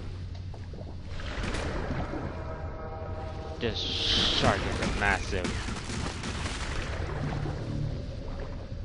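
Water rumbles and churns deep underwater.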